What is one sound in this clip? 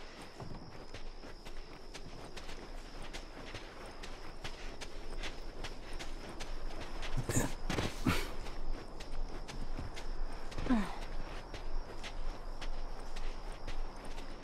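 Footsteps crunch steadily on dirt and gravel.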